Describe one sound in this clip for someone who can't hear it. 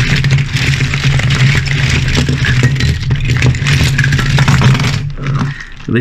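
Small metal toy cars tumble out of a plastic bag and clatter onto a pile.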